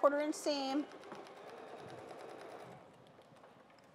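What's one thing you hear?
A sewing machine hums as it stitches.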